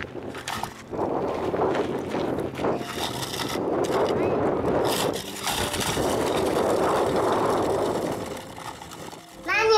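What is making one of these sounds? Plastic stroller wheels rattle over gravel.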